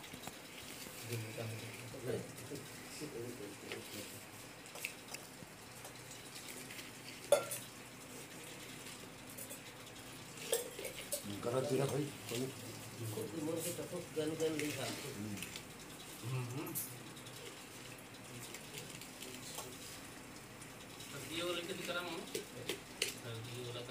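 Leaf wrappings rustle and crinkle as they are handled.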